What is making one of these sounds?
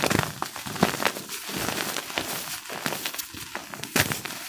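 Loose powder sifts and patters down through fingers.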